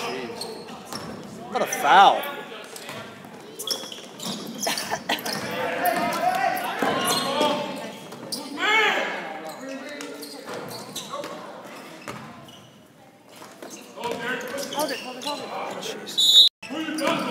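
Spectators talk and shout in a large echoing gym.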